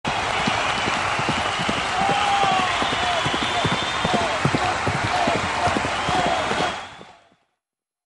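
Horses' hooves pound rapidly on a track.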